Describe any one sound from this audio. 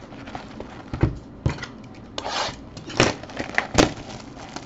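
A cardboard box is handled with soft taps and rustles.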